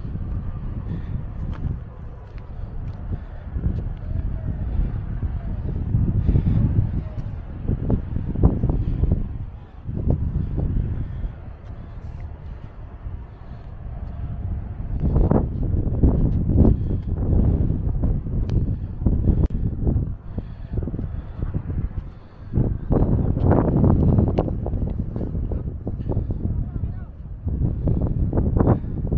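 Wind gusts roar outdoors on an open mountainside.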